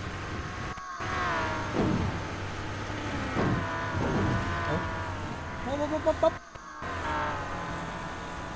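A vehicle engine hums steadily and revs.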